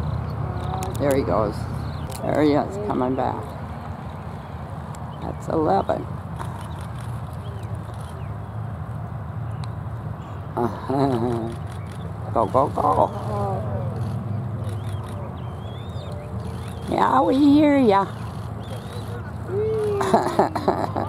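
Bald eagles call with high, chittering whistles.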